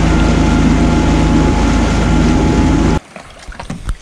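A boat engine roars loudly over rushing water.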